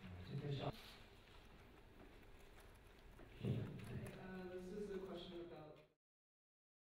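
Fingers tap on laptop keyboards.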